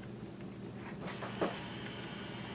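A book page is turned with a papery rustle.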